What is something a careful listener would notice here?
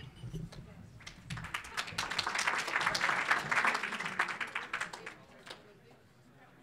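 A large crowd applauds in a big room.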